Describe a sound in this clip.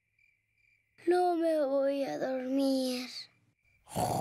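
A young girl yawns long and loudly.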